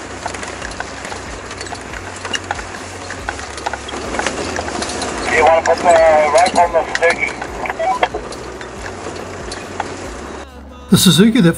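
Tyres crunch over loose stones.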